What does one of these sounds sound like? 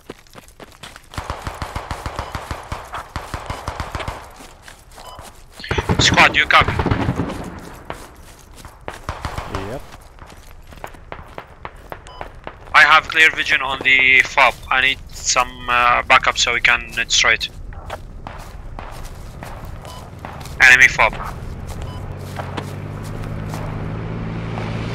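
Footsteps crunch steadily over grass and gravel.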